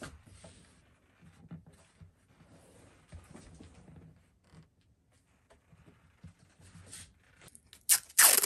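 Hands rub and press on a guitar's wooden body.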